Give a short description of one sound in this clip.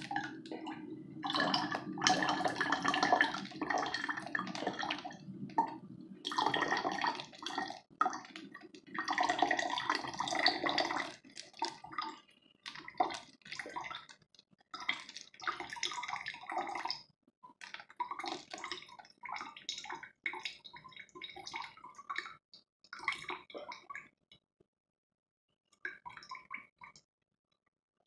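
Liquid pours in a thin stream and splashes onto a plastic bottle.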